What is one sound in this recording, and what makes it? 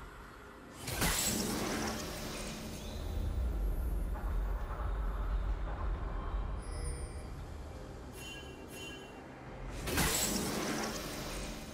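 Magic blasts whoosh and crackle in bursts.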